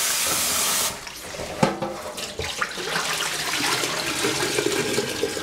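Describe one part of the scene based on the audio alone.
Water sloshes and pours out of a pot into a metal sink.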